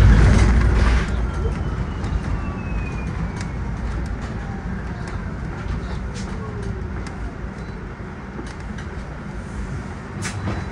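The bus body rattles and creaks with small knocks as it drives.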